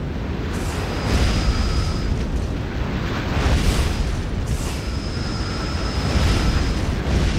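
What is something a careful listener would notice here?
A laser beam fires with a steady whining hum.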